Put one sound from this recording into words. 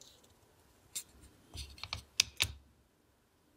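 A small plastic mechanism clicks as it is handled.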